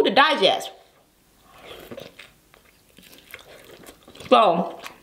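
Wet food squelches and slurps as a young woman eats.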